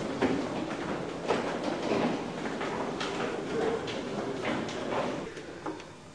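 Footsteps clang on metal stairs.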